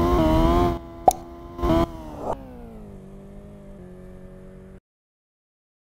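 A race car engine whines at high revs.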